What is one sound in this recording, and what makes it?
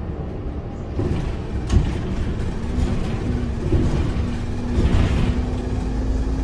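A bus body rattles and knocks over the road.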